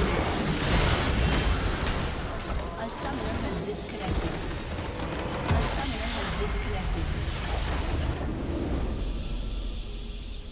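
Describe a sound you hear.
Game battle effects crash and blast loudly.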